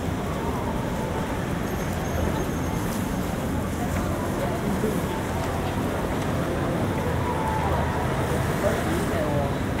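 City traffic hums steadily outdoors.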